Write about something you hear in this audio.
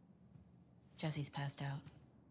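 A young woman speaks calmly from across a room.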